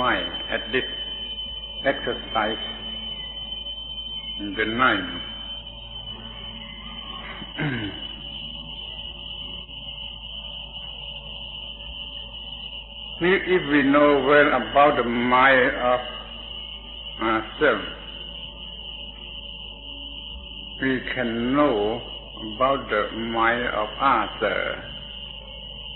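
An elderly man speaks calmly, with long pauses, in an old, hissy recording.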